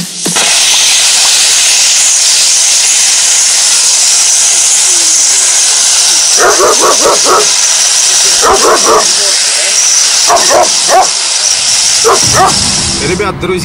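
A firework fountain hisses and roars loudly and steadily.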